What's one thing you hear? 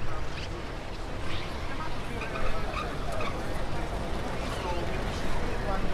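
A small van drives slowly past over cobblestones.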